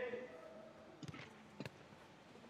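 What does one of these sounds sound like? A football thumps off a boot.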